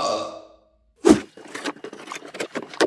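Tape rips off a cardboard box.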